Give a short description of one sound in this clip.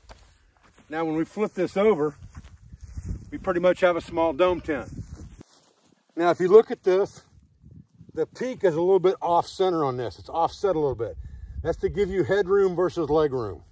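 An older man talks calmly, close by.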